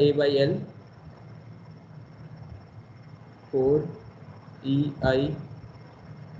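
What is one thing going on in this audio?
A man speaks calmly in short phrases through a microphone on an online call.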